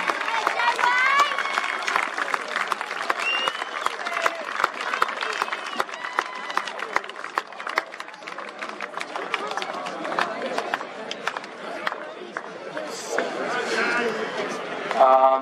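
A crowd cheers and claps outdoors.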